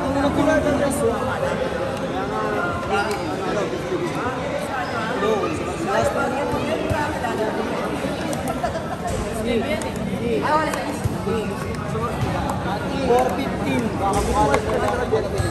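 Several men argue loudly with one another, with voices overlapping.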